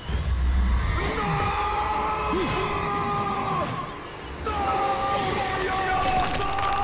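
A young man screams in terror, close by.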